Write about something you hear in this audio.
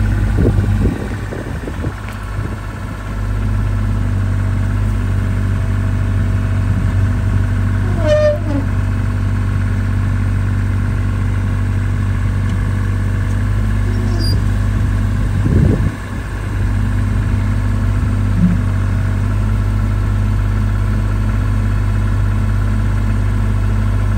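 Rubber tracks creak and clank as a small excavator shifts on asphalt.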